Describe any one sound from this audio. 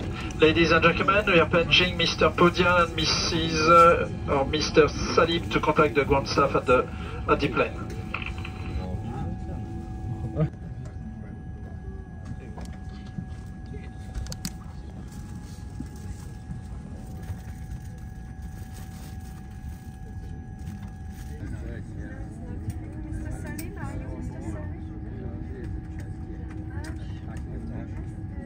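An aircraft cabin hums with a steady low rumble.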